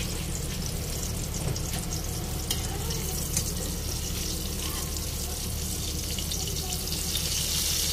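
Oil sizzles and crackles steadily around frying fish.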